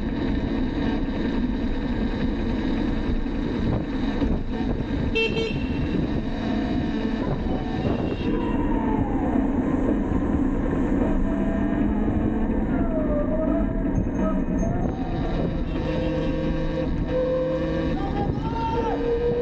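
Wind rushes steadily past a moving bicycle.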